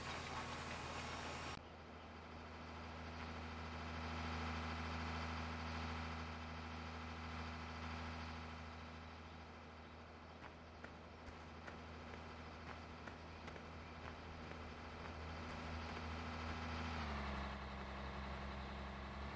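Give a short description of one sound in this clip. A diesel tractor engine hums steadily.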